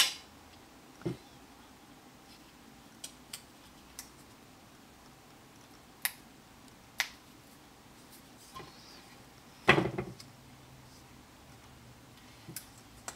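Hands handle pieces of stiff card, which rustle and tap.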